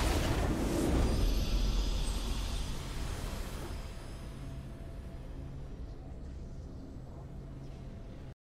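Triumphant music swells and then settles into held notes.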